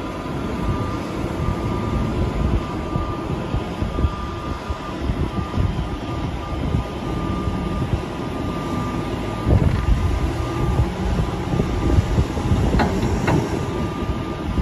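A loader's diesel engine rumbles steadily close by.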